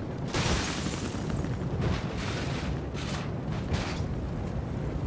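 A car crashes and tumbles with loud metallic bangs.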